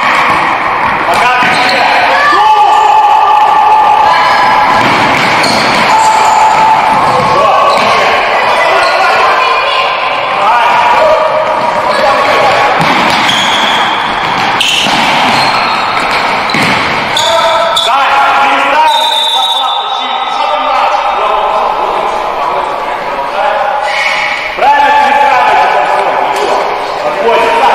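Young boys shout to one another across the hall.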